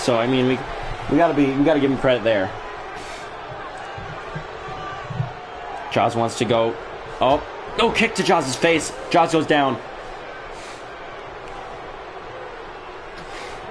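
A large crowd murmurs and cheers in an arena.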